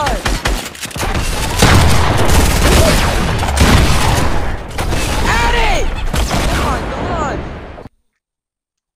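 Rapid gunshots crack and bang.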